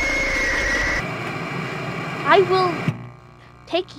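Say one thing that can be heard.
Harsh static hisses and crackles.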